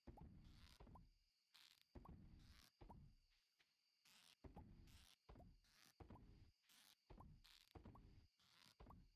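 A fishing line casts and splashes into water again and again in quick bursts.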